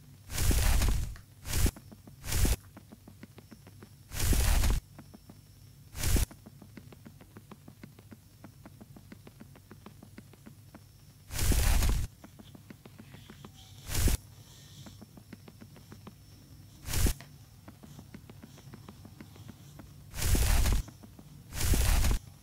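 Ice blocks crunch and shatter in short loud bursts.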